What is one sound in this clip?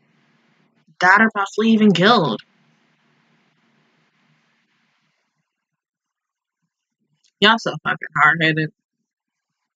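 A young woman speaks briefly, close to the microphone.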